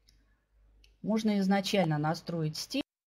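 A woman speaks over an online call with a headset microphone.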